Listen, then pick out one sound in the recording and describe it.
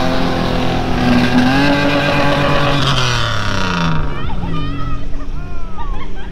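A truck engine revs hard and roars, then drops away as the truck drives off.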